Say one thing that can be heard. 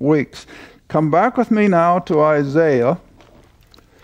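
An elderly man reads aloud slowly through a microphone.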